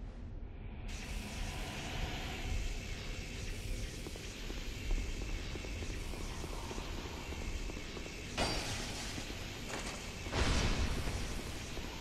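Armoured footsteps run across a stone floor.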